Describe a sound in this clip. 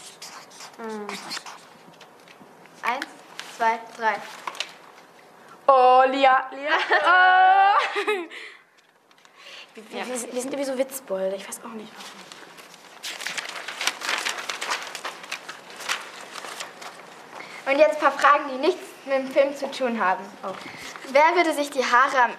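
Young girls talk in turn, close by.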